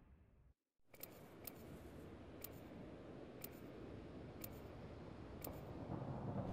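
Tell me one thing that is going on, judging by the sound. A countdown timer ticks once a second.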